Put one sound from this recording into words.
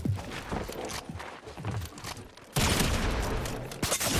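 Footsteps tap quickly on a wooden ramp.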